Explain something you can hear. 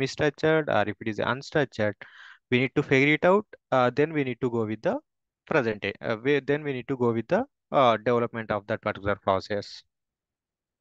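A man speaks calmly over an online call, explaining.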